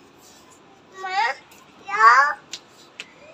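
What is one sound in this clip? A small girl calls out loudly nearby.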